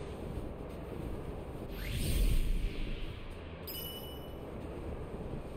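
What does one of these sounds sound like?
Air rushes past in a steady, deep roar, swelling into a loud whoosh.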